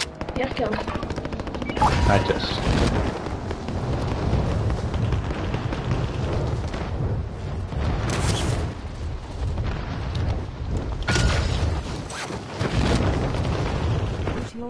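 Wind rushes loudly past during a fast descent through the air.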